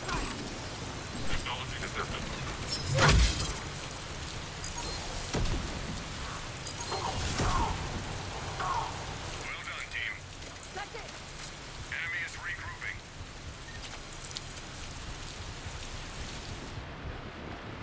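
Rain pours steadily outdoors.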